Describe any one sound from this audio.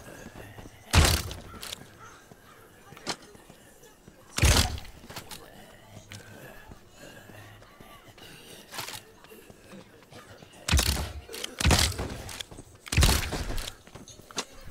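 A crossbow fires with a sharp thwack, again and again.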